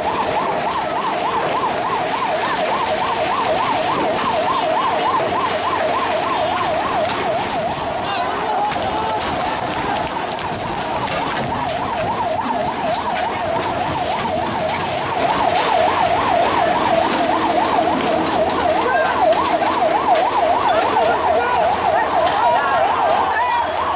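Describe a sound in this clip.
A vehicle siren wails rapidly up and down.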